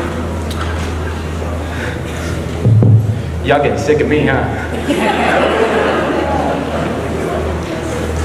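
A young man speaks through a microphone over loudspeakers in a large echoing room.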